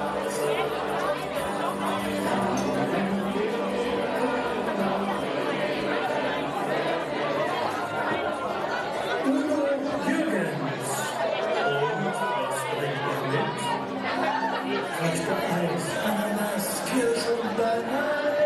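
A group of men sings in harmony through microphones in a large hall.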